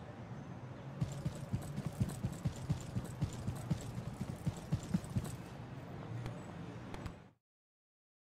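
Footsteps tread steadily on pavement.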